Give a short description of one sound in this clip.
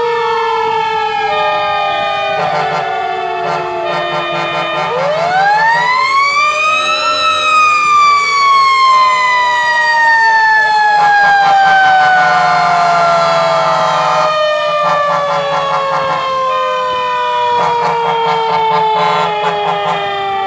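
Fire truck sirens wail close by, rising and falling.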